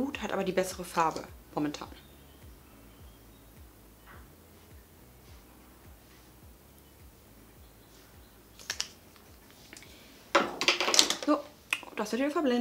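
A woman talks calmly and close to a microphone.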